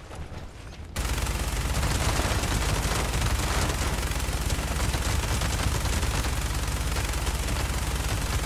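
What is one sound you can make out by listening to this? Rapid gunfire rattles loudly without pause.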